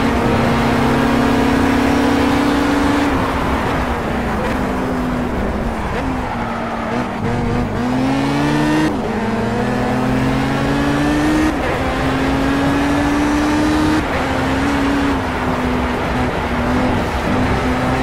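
A racing car engine roars at high revs, rising and falling as it shifts gears.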